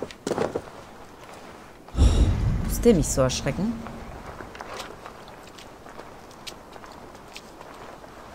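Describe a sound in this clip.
Soft footsteps crunch on a gravel path.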